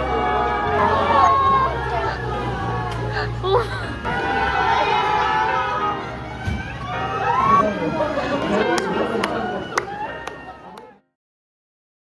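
A crowd of young women chatter and call out excitedly nearby.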